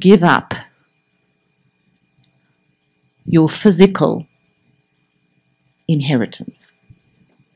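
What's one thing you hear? A middle-aged woman speaks calmly into a microphone, heard over a loudspeaker in a room, with pauses between phrases.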